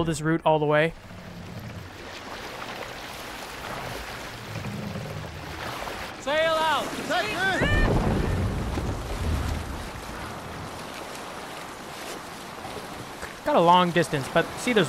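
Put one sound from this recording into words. Water splashes and rushes against the hull of a moving boat.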